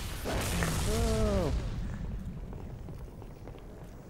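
An energy blade slashes with a sharp swoosh.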